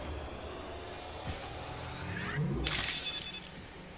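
A medical kit hisses and clicks as it is used.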